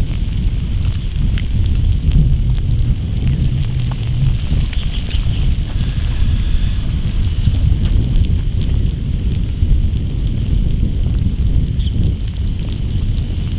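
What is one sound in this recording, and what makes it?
A man slurps noodles noisily.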